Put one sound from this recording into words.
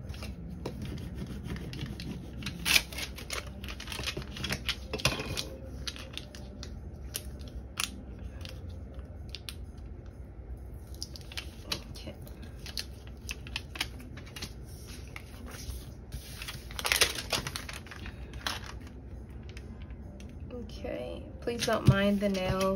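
Plastic sheets rustle and crinkle as they are handled.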